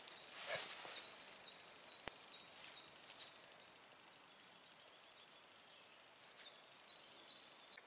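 A hand rustles through dry grass close by.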